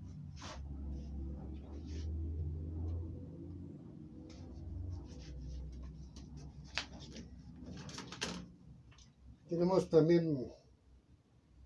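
Small cards tap and shuffle together in a man's hands.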